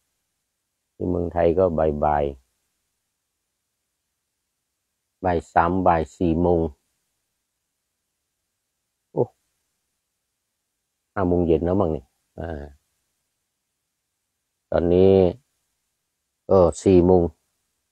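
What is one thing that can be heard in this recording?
An elderly man speaks calmly and slowly in short phrases, close by, with pauses between them.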